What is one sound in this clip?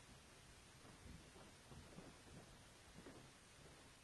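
Footsteps walk across a hard floor.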